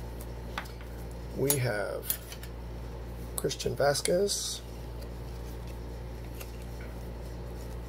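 Trading cards rustle and slide against each other.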